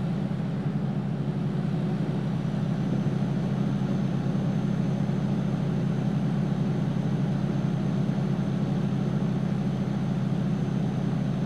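A truck engine drones steadily while driving along a highway.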